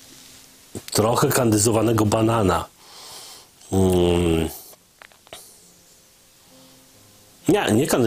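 A man speaks with animation into a close microphone, pausing between phrases.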